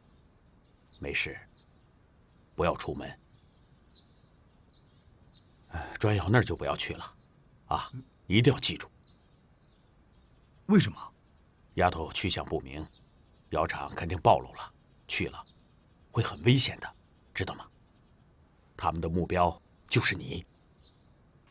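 An elderly man speaks earnestly in a low voice, close by.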